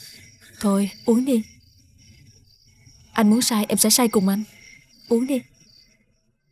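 A young woman speaks softly and earnestly, close by.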